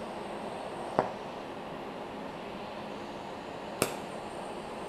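Sharp pops crack from the welding arc.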